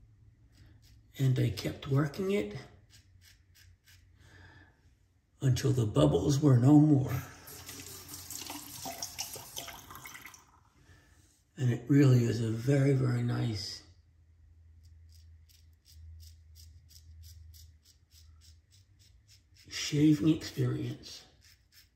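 A razor scrapes over stubble.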